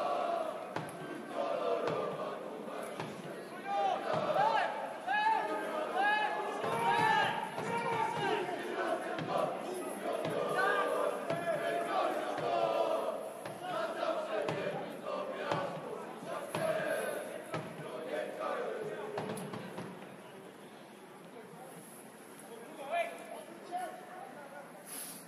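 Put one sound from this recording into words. Young men shout to one another across an open outdoor pitch.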